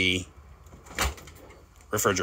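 A refrigerator door clicks open.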